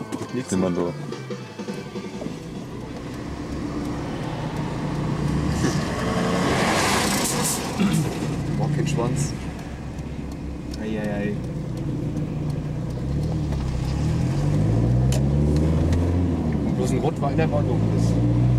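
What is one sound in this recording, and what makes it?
A car engine hums steadily, heard from inside the car.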